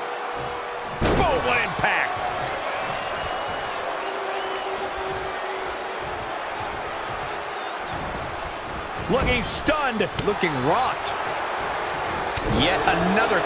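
Heavy body blows thud on a wrestling ring.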